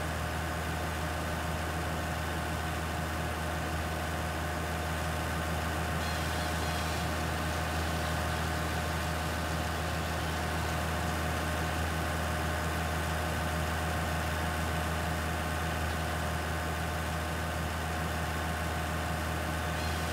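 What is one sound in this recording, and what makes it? A wood chipper whirs and grinds steadily.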